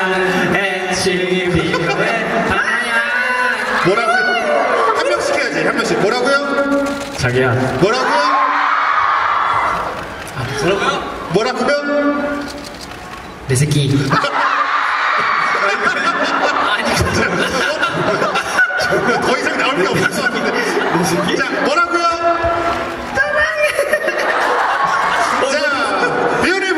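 Young men talk through microphones over loudspeakers in a large echoing hall.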